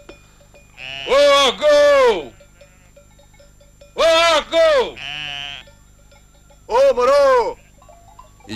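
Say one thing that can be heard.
A man outdoors cries out loudly in long, wavering calls.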